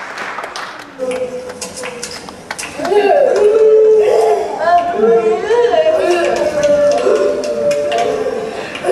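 Music plays through loudspeakers in a large hall.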